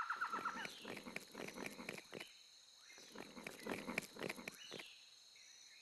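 A gorilla munches noisily on leaves.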